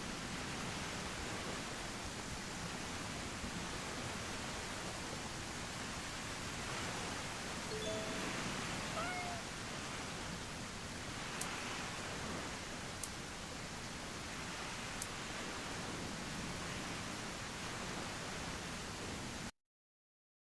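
Heavy rain falls steadily outdoors.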